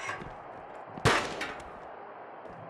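A metal chair clatters and bangs.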